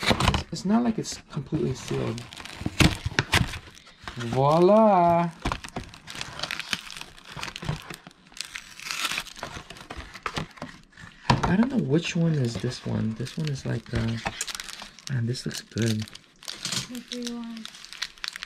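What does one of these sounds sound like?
Paper rustles and crinkles as a box is unfolded.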